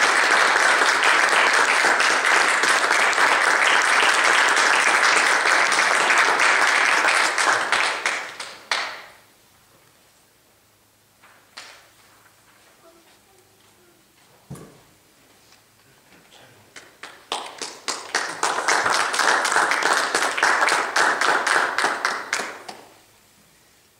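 An audience applauds loudly in an echoing hall.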